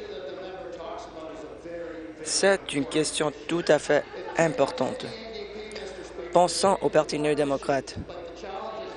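A man speaks forcefully into a microphone in a large echoing hall.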